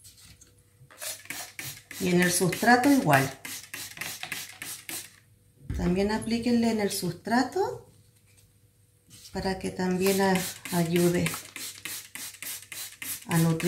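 A spray bottle squirts water in quick repeated bursts.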